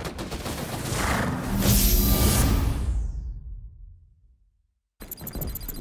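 A deep whooshing swell rises and fades away.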